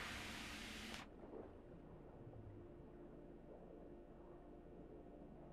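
Bubbles gurgle and rise underwater.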